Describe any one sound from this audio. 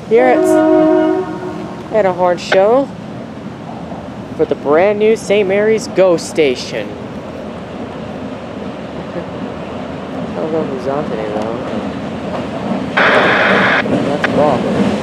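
A diesel locomotive's air horn blasts in long chords.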